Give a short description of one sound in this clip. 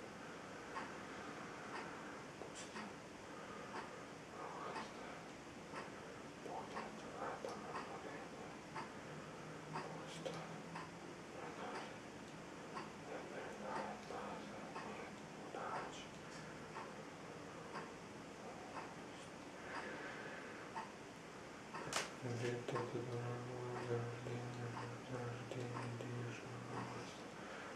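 A young man speaks quietly and steadily close by.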